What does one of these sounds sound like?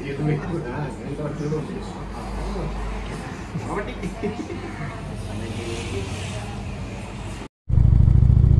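Adult men talk casually, close by.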